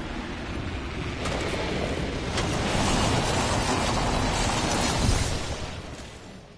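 Wind rushes loudly past during a fast fall.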